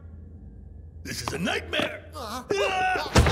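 A cartoon man groans and mumbles in a deep voice.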